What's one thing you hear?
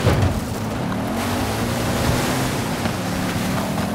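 Water splashes loudly under a car's tyres.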